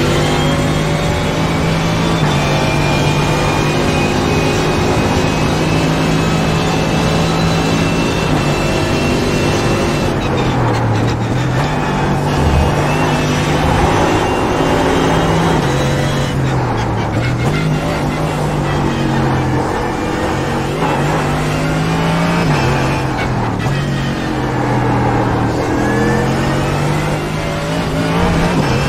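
A race car engine roars loudly, climbing in pitch through the gears and dropping as the car slows for corners.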